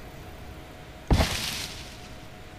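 A thatch wall breaks apart with a short rustling crash.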